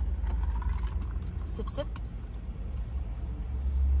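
A young woman sips loudly through a straw.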